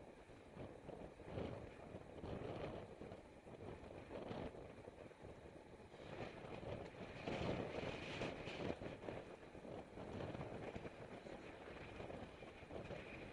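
Bicycle tyres hum on a paved road.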